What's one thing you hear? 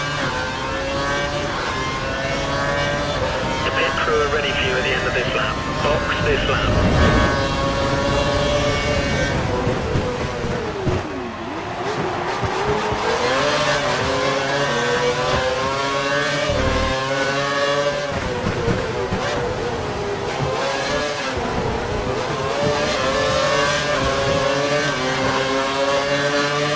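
A racing car engine screams, rising and falling in pitch as it shifts gears.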